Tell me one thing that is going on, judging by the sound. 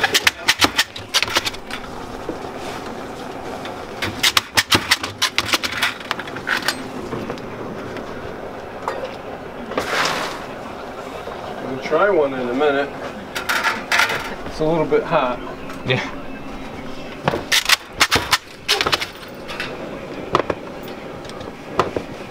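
A hammer strikes metal in quick, sharp blows.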